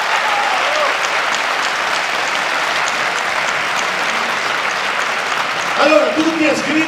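A large crowd applauds and cheers in an echoing hall.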